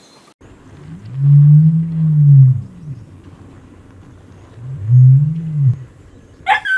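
An ostrich makes deep booming calls.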